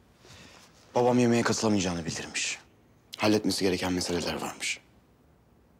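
A woman speaks firmly, close by.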